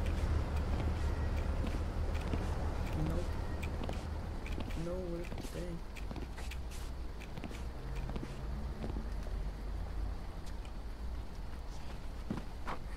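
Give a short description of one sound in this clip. Footsteps fall steadily on pavement.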